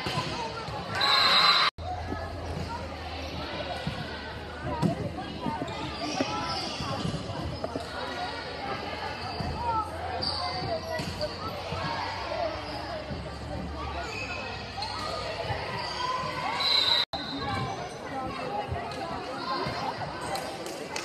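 A volleyball is struck by players' hands.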